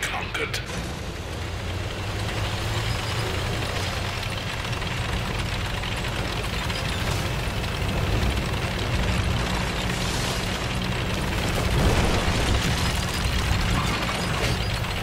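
Tank tracks clank and squeal over the ground.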